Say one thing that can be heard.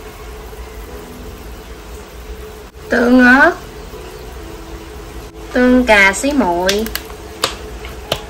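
Thick sauce pours into a pan of simmering broth.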